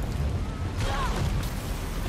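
A firework bursts with a sharp bang.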